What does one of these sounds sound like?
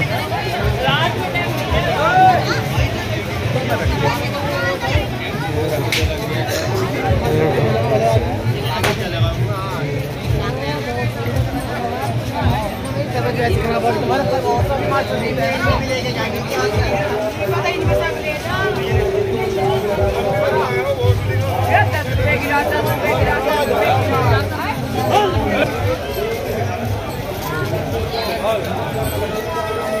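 A crowd of men chatters and calls out outdoors.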